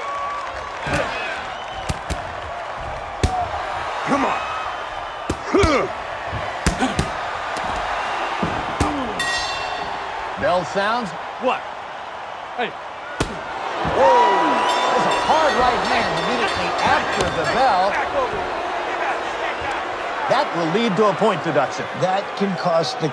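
A large crowd cheers and shouts throughout.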